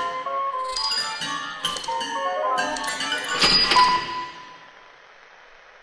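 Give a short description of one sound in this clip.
A piano plays a quick run of notes that ring out and fade in a large hall.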